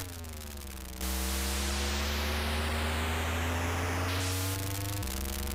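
Video game tyres screech in a long hiss during a drift.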